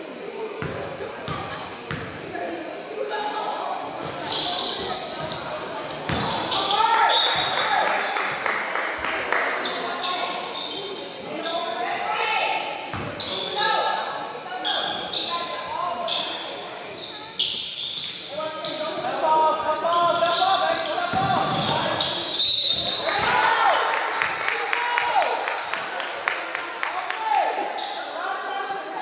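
Young spectators and players shout and chatter in an echoing gym.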